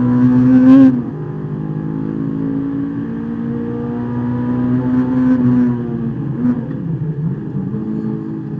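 A car engine hums steadily and rises and falls in pitch while the car drives through bends.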